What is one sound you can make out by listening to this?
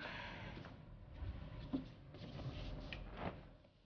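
An armchair creaks as a woman sits down.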